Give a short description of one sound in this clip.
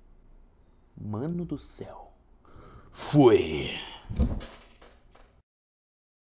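A young man speaks close to a microphone.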